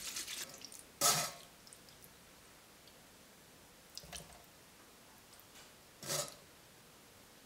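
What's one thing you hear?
A metal spoon scrapes against a metal sieve.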